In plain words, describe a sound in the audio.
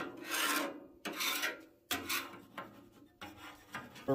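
A brush scrubs a griddle surface.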